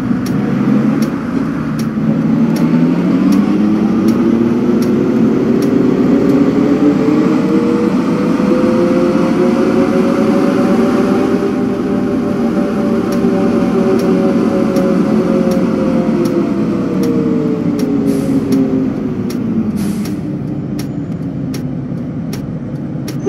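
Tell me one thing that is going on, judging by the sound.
A bus engine hums, rising in pitch as it speeds up and then falling as it slows.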